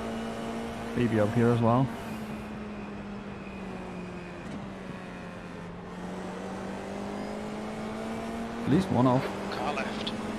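Nearby racing car engines rise and fall in pitch as they pass.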